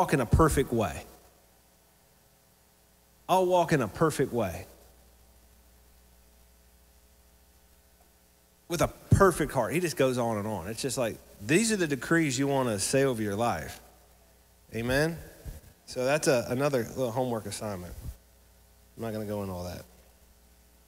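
A man speaks with animation into a microphone, heard through a loudspeaker, with pauses between phrases.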